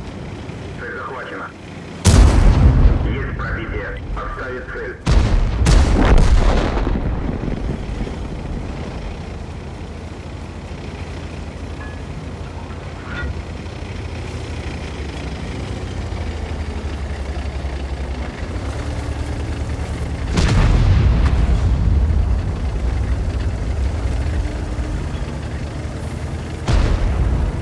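A tank engine rumbles low and steady as the tank drives.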